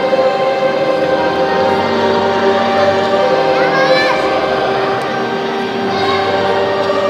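A large congregation sings together in a big echoing hall.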